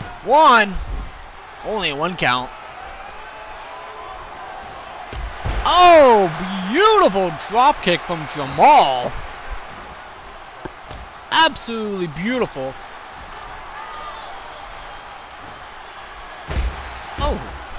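Bodies slam down onto a wrestling mat with heavy thuds.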